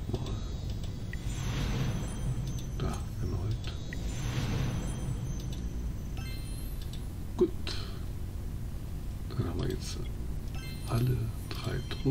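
Game sound effects whoosh and chime as rewards are revealed.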